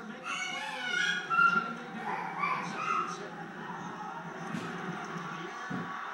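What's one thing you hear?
A young child babbles and squeals nearby.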